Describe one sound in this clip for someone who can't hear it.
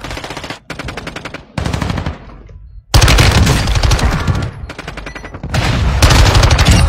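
Rapid gunfire bursts out in loud, quick volleys.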